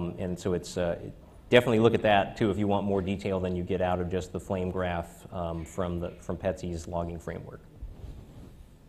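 A man speaks calmly into a microphone, heard over loudspeakers in a large room.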